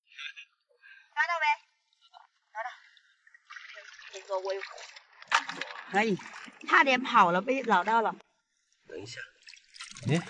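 Water sloshes as hands reach into a shallow pool.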